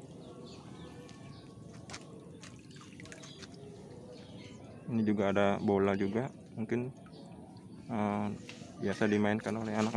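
A net splashes softly through shallow water.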